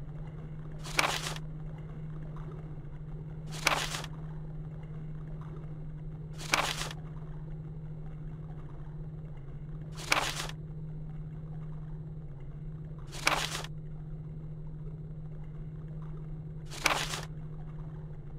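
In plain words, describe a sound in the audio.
A paper page turns with a short swish.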